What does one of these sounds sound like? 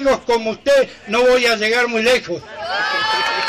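An elderly man speaks loudly with animation through a microphone and loudspeakers.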